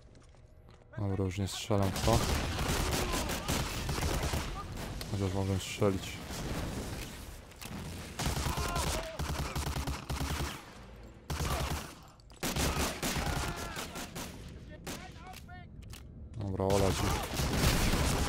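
A gun fires loud bursts of shots that echo in an enclosed space.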